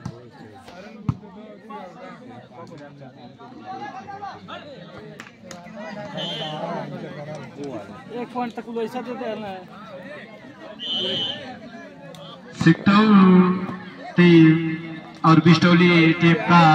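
A crowd of young men chatter and shout outdoors.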